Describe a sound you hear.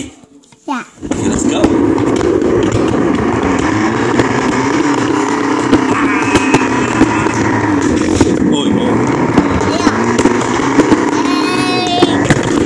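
A cardboard box scrapes and slides across a floor.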